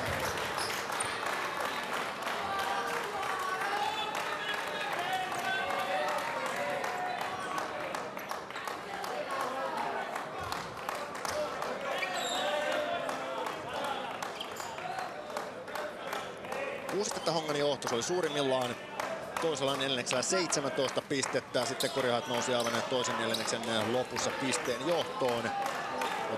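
A large crowd murmurs and chatters in an echoing arena.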